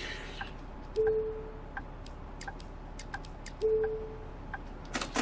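A ticket machine beeps twice.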